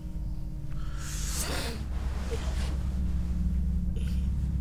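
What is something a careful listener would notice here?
Clothing rustles as a person turns over on a sofa.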